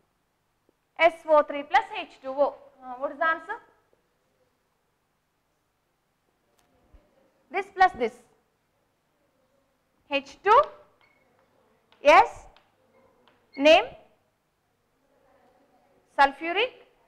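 A woman speaks calmly and clearly, as if teaching, in short phrases with pauses.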